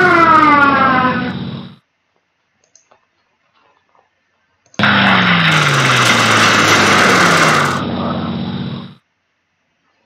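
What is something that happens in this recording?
A tank engine rumbles loudly, then fades away.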